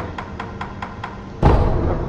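A small fire crackles nearby.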